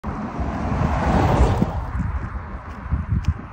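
A car drives past close by, its tyres hissing on the road, then fades away.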